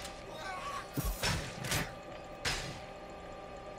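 A blade hacks into a body with heavy, wet thuds.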